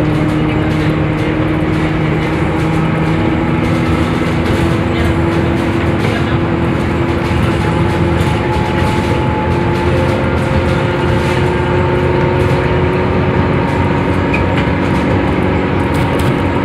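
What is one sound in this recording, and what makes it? A bus engine hums and whines steadily from inside the bus.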